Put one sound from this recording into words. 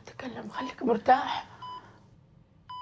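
A middle-aged woman speaks with emotion, close by.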